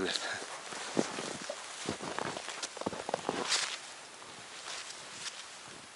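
Boots crunch and trudge through deep snow.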